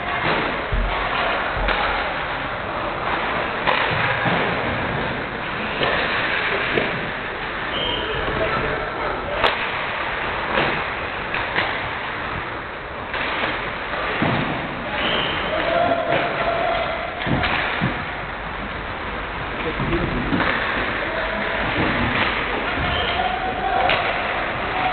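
Skate blades scrape across ice in a large echoing hall.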